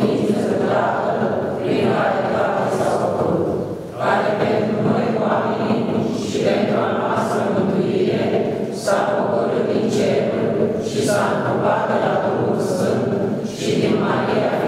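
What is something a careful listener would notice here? A crowd of men and women chants a prayer together in unison, echoing in a large hall.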